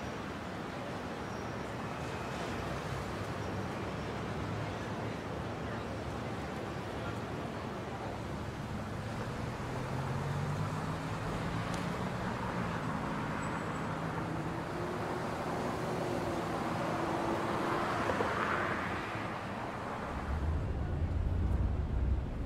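City traffic rumbles and hums steadily.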